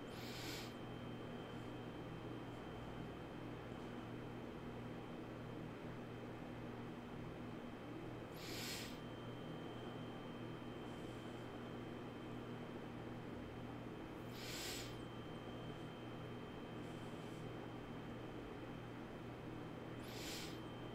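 A man breathes in slowly and deeply, close to a microphone.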